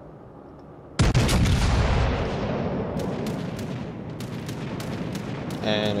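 A warship's big guns fire with loud, rumbling booms.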